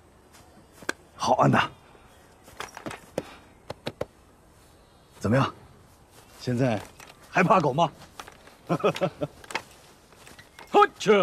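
A man speaks with a laugh, close by.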